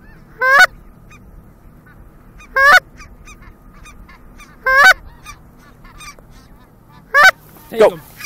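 A flock of geese honks overhead.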